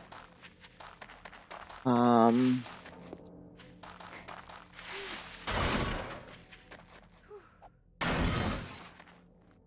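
Footsteps crunch over dry leaves and twigs.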